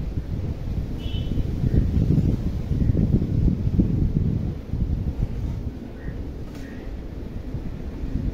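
Wind blows outdoors in gusts, rumbling against the microphone.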